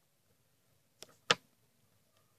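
Small glass pieces click against a metal lid.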